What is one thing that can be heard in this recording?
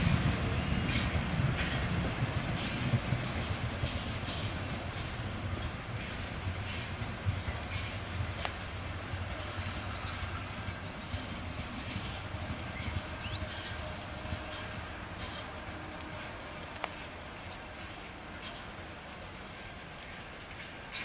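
A steam locomotive chugs as it pulls away, slowly fading into the distance.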